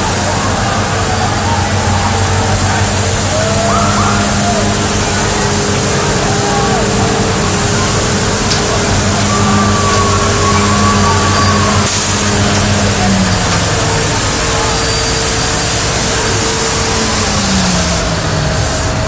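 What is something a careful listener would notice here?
A large truck engine idles close by with a low, steady rumble.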